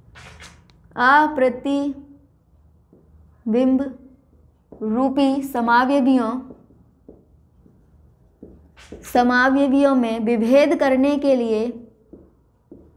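A young woman speaks calmly, as if explaining a lesson.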